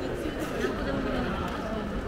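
A young woman laughs close by.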